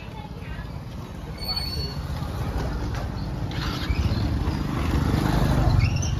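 A motorbike drives past close by, its engine rising as it nears.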